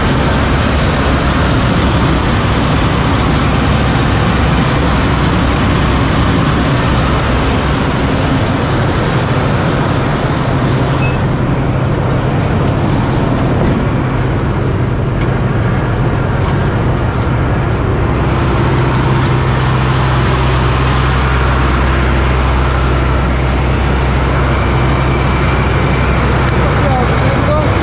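A large diesel engine runs loudly and steadily close by.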